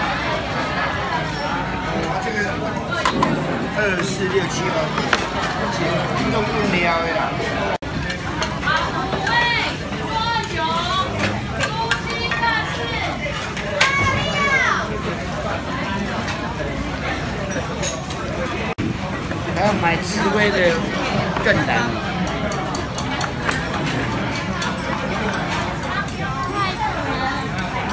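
Dishes and utensils clink and clatter.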